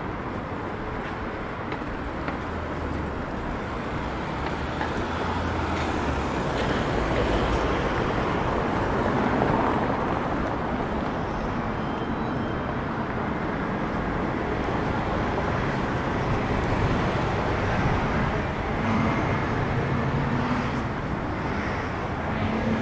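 City traffic hums steadily outdoors.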